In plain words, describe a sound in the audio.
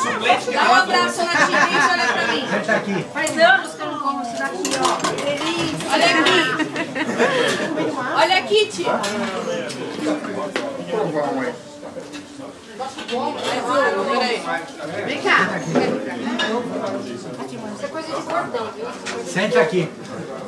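Several women talk and laugh loudly close by, their voices overlapping.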